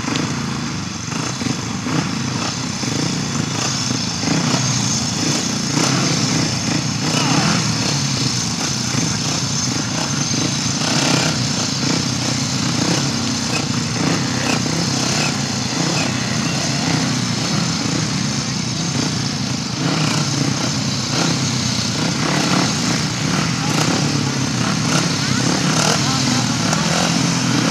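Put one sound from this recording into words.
Several motorcycle engines idle and rev loudly, heard from a distance outdoors.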